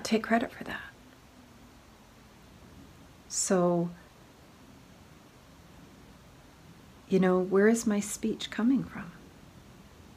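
A middle-aged woman speaks quietly and haltingly, close by.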